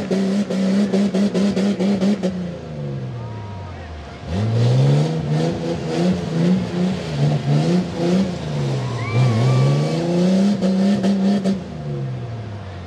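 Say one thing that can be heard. An engine revs hard, rising and falling in pitch.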